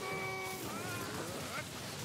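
Lightning crackles and zaps sharply.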